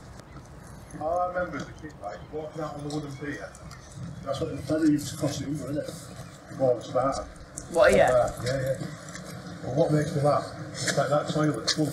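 A man talks casually outdoors while walking.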